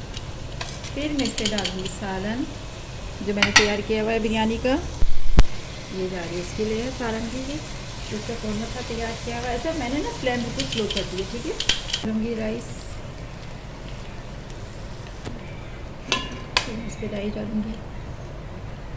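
A woman speaks calmly close to a microphone.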